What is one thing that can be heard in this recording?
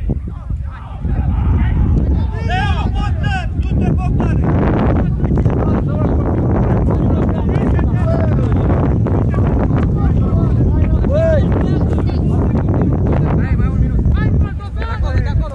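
Wind blows hard outdoors, rumbling against the microphone.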